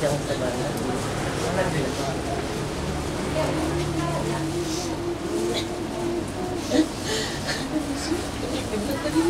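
Several adults murmur softly nearby.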